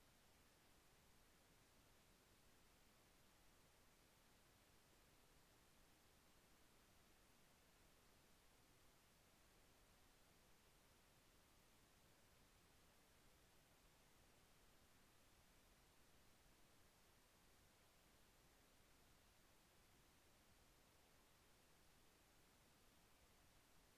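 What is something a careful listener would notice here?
Television static hisses faintly and steadily.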